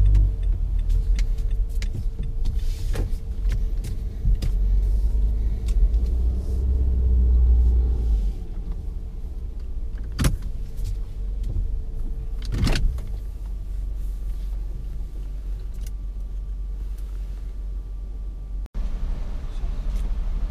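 A car engine hums low and steady, heard from inside the car.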